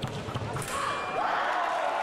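Fencing blades clash and scrape.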